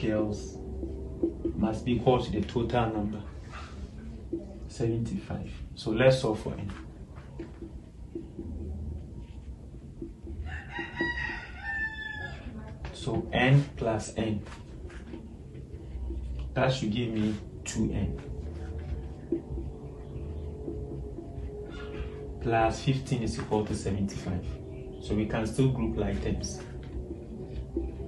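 A young man speaks calmly, explaining as he goes, close to a microphone.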